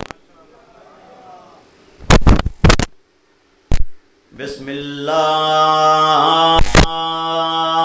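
A man chants in long, drawn-out notes into a microphone, amplified and loud.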